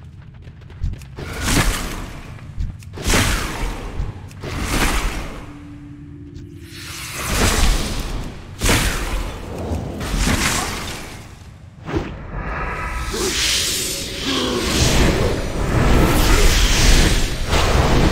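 Spell effects whoosh and crackle in bursts.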